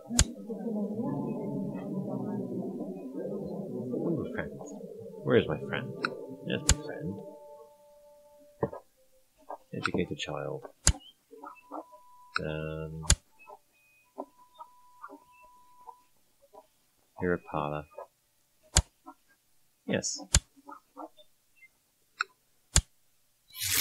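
Short interface clicks sound as menus open and close.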